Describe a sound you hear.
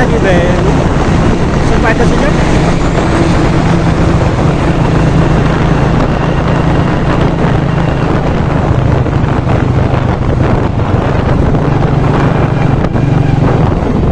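A motorcycle engine hums steadily close by as it rides along.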